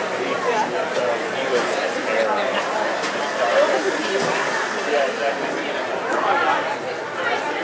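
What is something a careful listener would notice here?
A crowd of people chatters all around in a busy echoing hall.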